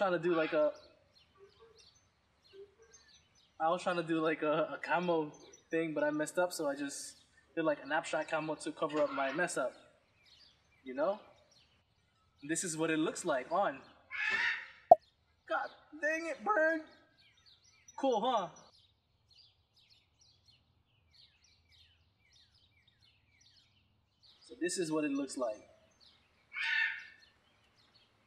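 A young man talks with animation, close to the microphone.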